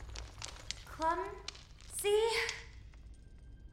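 A small creature calls out in a high, echoing voice.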